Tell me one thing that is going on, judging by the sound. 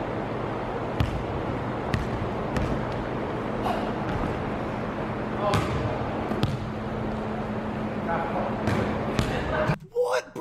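A basketball bounces on a hard indoor court.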